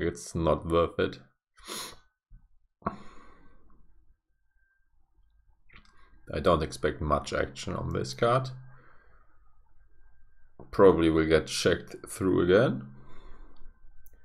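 A young man talks casually into a nearby microphone, in short bursts with pauses.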